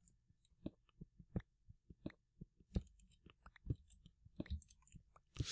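A pickaxe chips at stone with quick, light taps.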